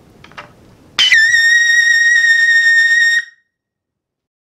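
A trumpet plays a single long, steady high note up close.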